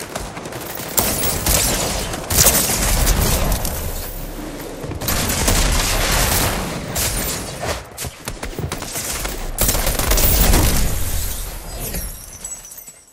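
Gunshots and blasts crack loudly in a video game.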